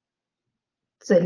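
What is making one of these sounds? A woman begins speaking calmly into a microphone.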